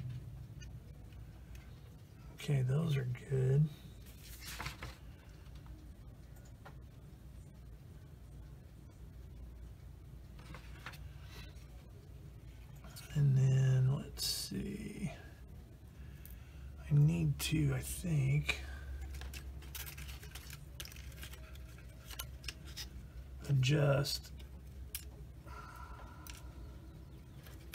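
Small plastic model parts click and tap softly as hands handle them.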